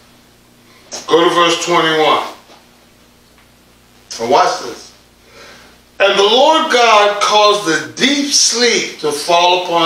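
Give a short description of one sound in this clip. A man preaches with animation into a microphone, pausing between phrases.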